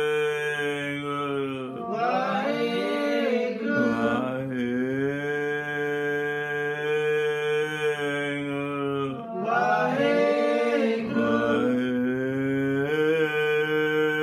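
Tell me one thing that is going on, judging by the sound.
An elderly man sings a slow, drawn-out chant close by.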